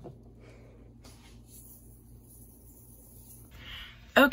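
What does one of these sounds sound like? Seasoning powder pours softly onto popcorn.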